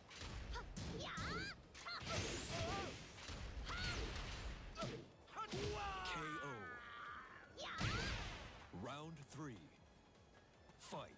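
Glittering magical sound effects whoosh and chime.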